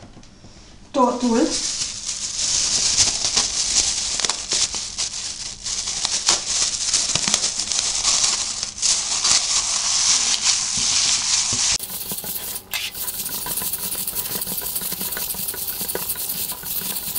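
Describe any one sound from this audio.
Plastic gloves crinkle and rustle.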